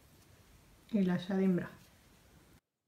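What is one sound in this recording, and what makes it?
A woman speaks briefly and calmly, close to the microphone.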